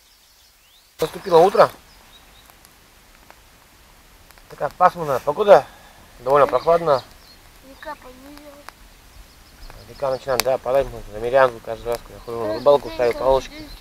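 A man talks casually outdoors.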